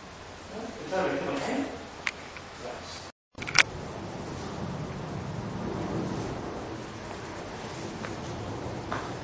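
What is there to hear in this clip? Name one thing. Footsteps shuffle on a wooden floor in a large echoing hall.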